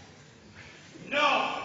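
Two men speak to each other in a large echoing hall.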